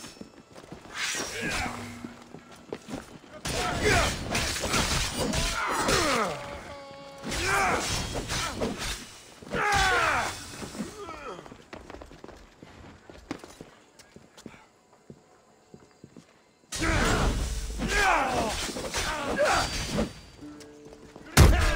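Metal blades clash and strike repeatedly in a fight.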